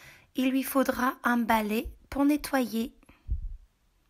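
A paper page turns.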